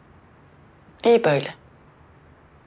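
A young woman speaks briefly and quietly nearby.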